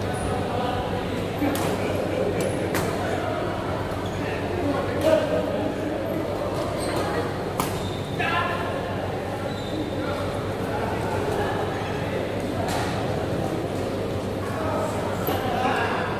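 Several young men call out to each other across the hall.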